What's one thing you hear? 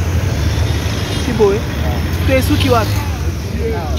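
A motorcycle engine runs close by.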